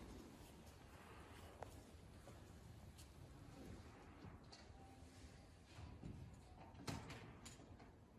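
Robes rustle softly as a priest kneels and rises.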